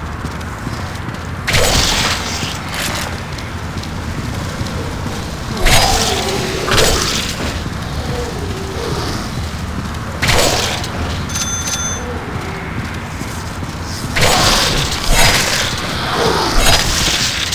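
A zombie growls and groans.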